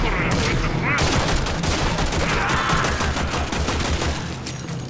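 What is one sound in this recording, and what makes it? A gun fires a rapid burst of shots.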